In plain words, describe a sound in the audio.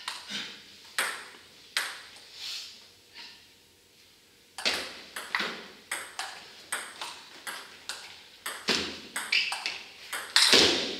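Sharp ball clicks echo through a large hall.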